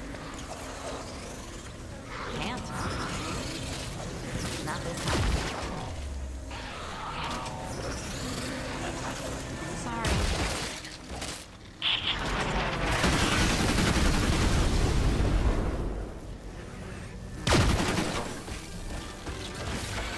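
Blades swing and strike in a busy fight.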